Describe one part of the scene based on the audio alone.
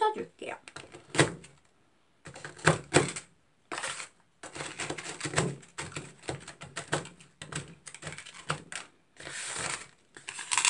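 Plastic spatulas scrape and tap against a metal plate, crushing cookies.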